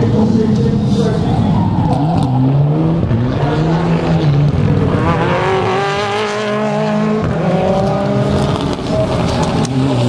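A second turbocharged four-cylinder rally car revs hard and pulls away.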